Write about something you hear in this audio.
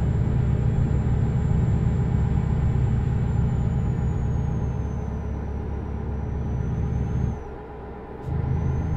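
A truck engine rumbles steadily, briefly dropping away before picking up again.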